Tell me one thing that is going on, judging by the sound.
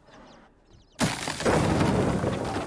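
Wooden planks crash and collapse with a loud rumble.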